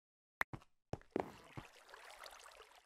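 Lava bubbles and hisses softly nearby.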